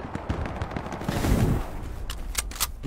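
Shells explode nearby with loud booms.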